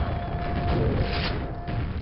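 A double-barrelled shotgun blasts in a game.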